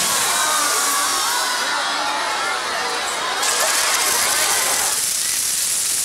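Fireworks whistle with wavering tones.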